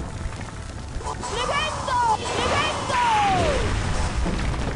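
A magic spell whooshes with sweeping, falling tones.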